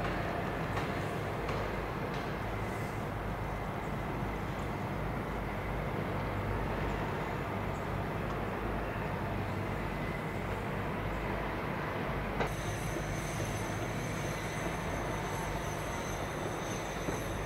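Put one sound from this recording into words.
An excavator's diesel engine rumbles steadily at a distance.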